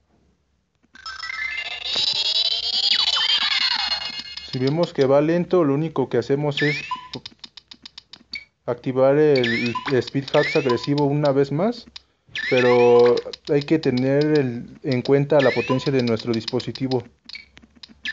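Upbeat electronic game music plays with bouncy melodies.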